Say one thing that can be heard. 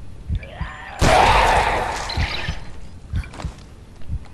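A loud explosion bursts and rumbles away.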